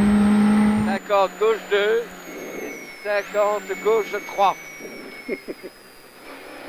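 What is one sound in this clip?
A man reads out pace notes quickly over a helmet intercom.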